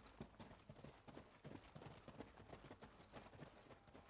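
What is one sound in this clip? Footsteps crunch on dirt.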